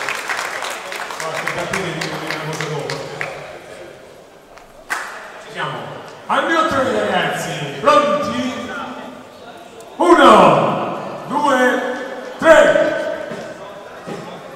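A man announces with animation through a microphone and loudspeakers, in a large echoing hall.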